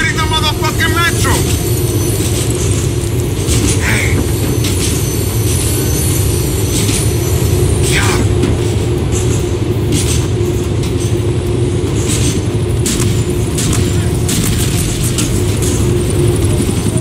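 A train rumbles and clatters along the tracks.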